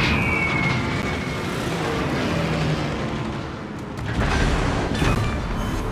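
Shells splash heavily into water.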